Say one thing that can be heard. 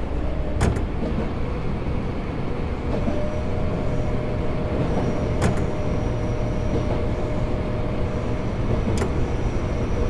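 Train wheels click sharply over rail joints.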